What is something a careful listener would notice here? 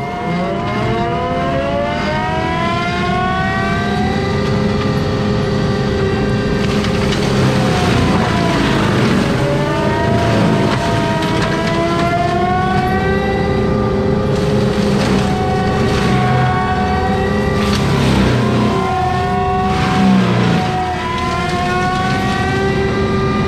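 A heavy machine's engine roars steadily close by.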